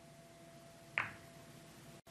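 A cue sharply strikes a billiard ball.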